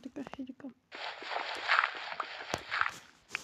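Dirt crunches loudly as it is dug away.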